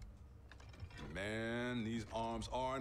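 A young man speaks with confidence.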